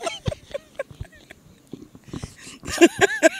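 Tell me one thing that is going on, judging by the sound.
A man laughs into a microphone close by.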